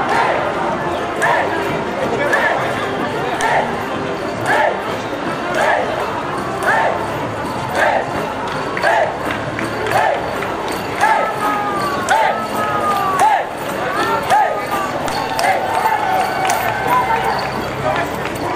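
A drum beats a steady marching rhythm.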